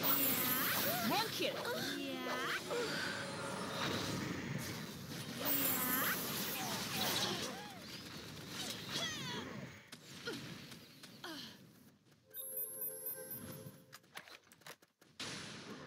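Game spells crackle and whoosh in quick bursts.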